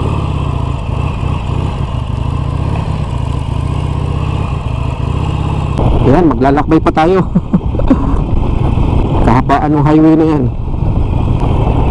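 A motorcycle engine rumbles steadily while riding.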